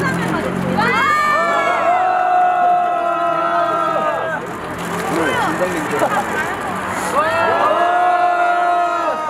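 A group of young women shout together in unison.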